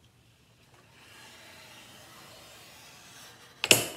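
A cutter blade slides along and slices through a board.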